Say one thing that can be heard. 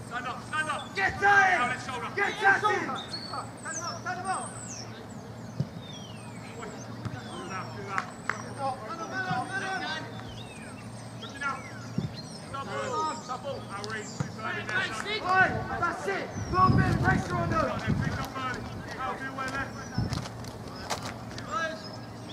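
Football players shout to each other across an open pitch outdoors.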